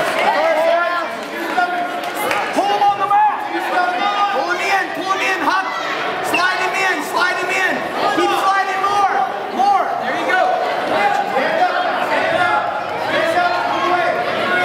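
A crowd of spectators shouts encouragement in a large echoing gym.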